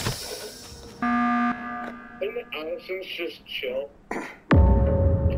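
An alarm blares for an emergency meeting.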